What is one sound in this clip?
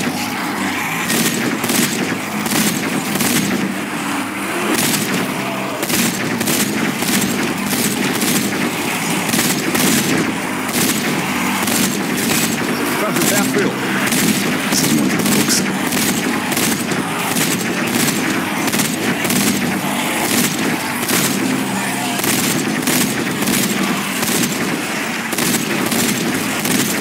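A heavy machine gun fires in rapid bursts.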